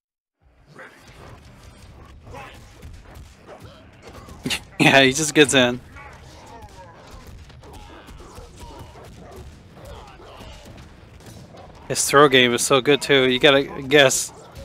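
Punches and slashes thud and crack in a video game fight.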